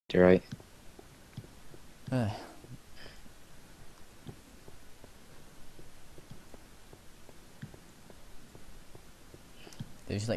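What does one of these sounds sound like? Footsteps tap softly on stone.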